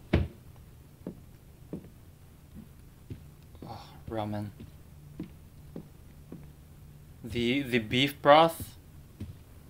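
Footsteps tap softly on a wooden floor.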